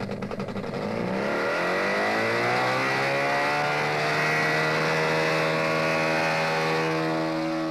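A small engine revs up with a rising whine.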